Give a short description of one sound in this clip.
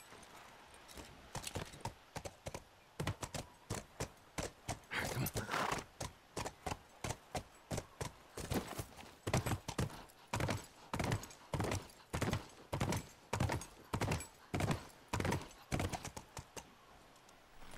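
A horse's hooves clop on the ground.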